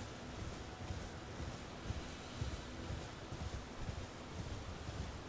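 Horse hooves thud in a steady gallop over grass.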